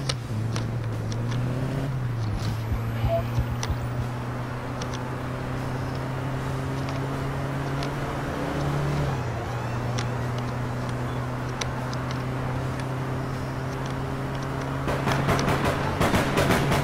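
A car engine hums steadily as a car drives along, shifting pitch now and then.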